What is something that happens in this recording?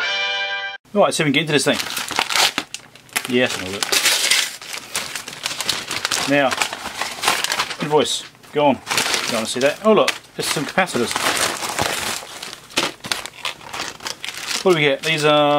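A plastic mailer bag rustles and crinkles as it is handled.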